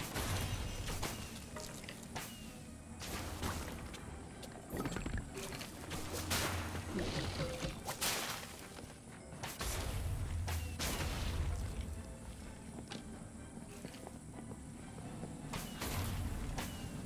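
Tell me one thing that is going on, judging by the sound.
Sharp game combat hits and impacts crack again and again.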